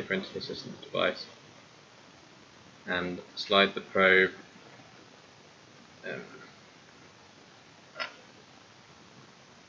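Small plastic parts click and rub as hands fit them together.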